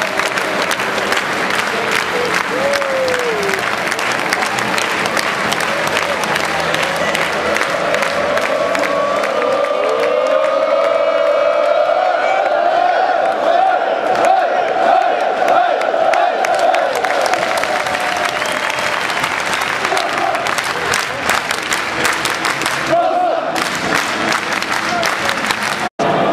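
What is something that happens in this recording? A large stadium crowd roars and cheers loudly outdoors.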